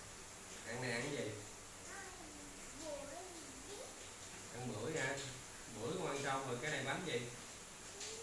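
A man talks gently and playfully up close.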